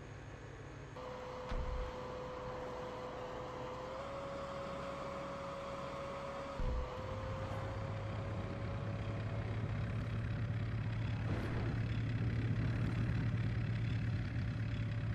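A heavy tracked vehicle's engine rumbles steadily.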